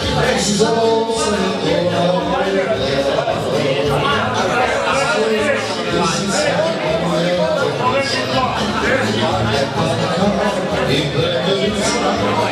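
Several men talk over each other loudly and with animation close by.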